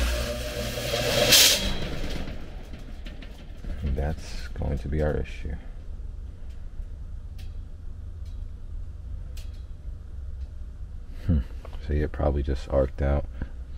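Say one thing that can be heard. A blower motor hums low and steadily.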